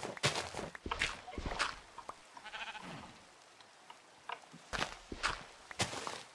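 Game digging sounds crunch repeatedly as dirt blocks break.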